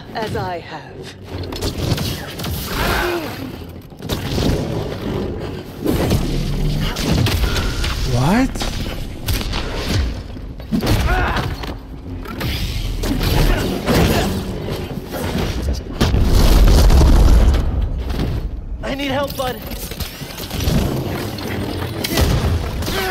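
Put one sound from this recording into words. Lightsabers hum and clash in a game.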